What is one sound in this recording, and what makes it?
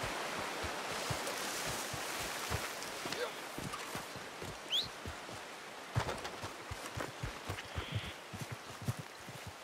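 Footsteps crunch through grass and dirt at a steady walking pace.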